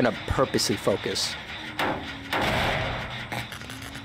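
A heavy engine rattles and clanks as it is struck.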